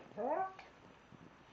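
A dog gives a short rising whine up close.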